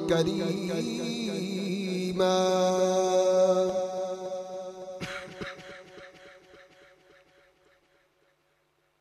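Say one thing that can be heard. A man chants loudly through a microphone in long, held notes that echo and slowly fade.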